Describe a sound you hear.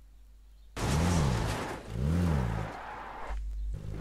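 A vehicle engine revs and hums.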